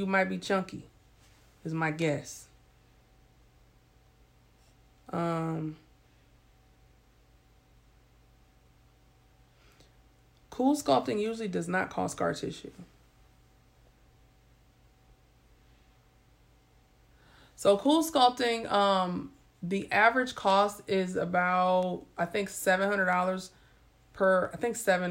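A woman speaks calmly and close to a microphone, with long pauses.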